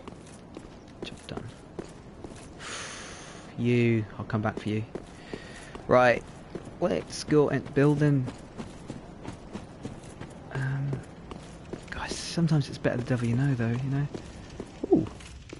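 Armoured footsteps clatter on stone.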